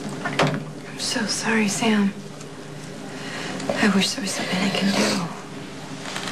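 A young woman speaks tearfully and emotionally up close.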